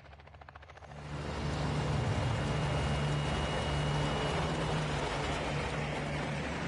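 A propeller plane's engines roar loudly and steadily.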